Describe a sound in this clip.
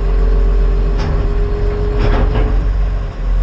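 Metal parts clank sharply a few times.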